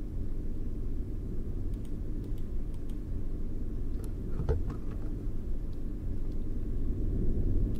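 A low, ominous drone hums steadily.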